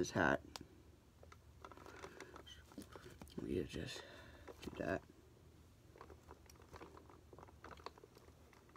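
Fabric rustles and plastic clicks as a toy is handled.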